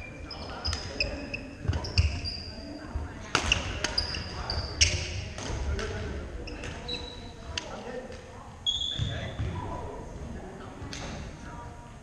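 Badminton rackets strike shuttlecocks with quick pops.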